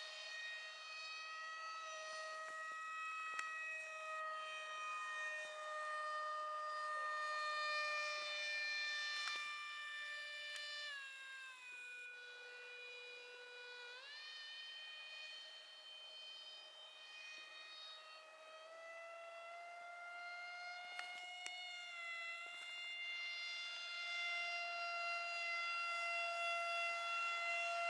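A jet engine whines high overhead, its pitch dipping and rising as it passes.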